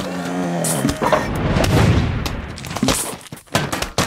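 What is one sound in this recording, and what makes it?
A fiery roar from a game bursts out.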